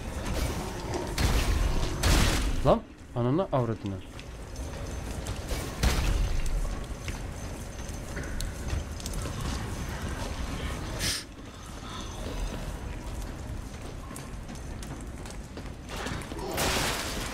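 Metal weapons clash in a fight.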